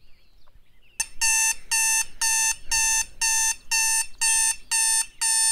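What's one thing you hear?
An alarm clock beeps loudly in fast repeated bursts.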